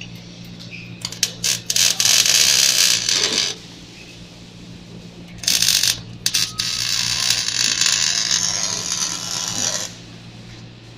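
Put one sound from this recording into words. An arc welder crackles and sizzles in loud bursts.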